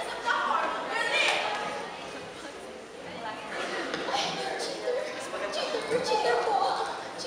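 A young woman speaks dramatically, heard from a distance in a large echoing hall.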